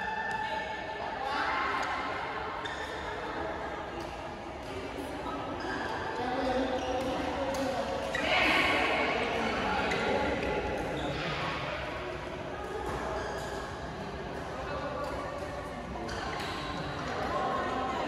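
Shuttlecocks are struck with rackets with sharp pops.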